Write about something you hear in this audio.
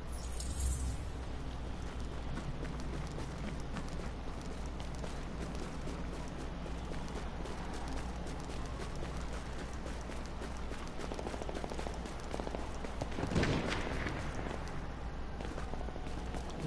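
Footsteps crunch on snow as a figure runs down a street.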